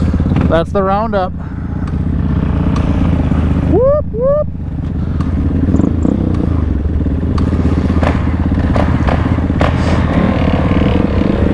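Dirt bike engines idle and rev close by.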